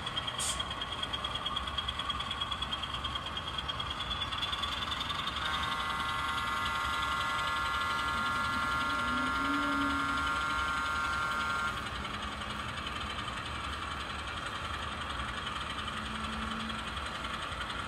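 A model train hums and clatters steadily along its track.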